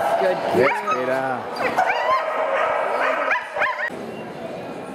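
A woman calls out excitedly to a dog in an echoing hall.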